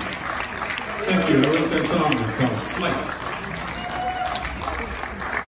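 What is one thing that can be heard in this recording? An acoustic band plays guitar, fiddle and mandolin through loudspeakers.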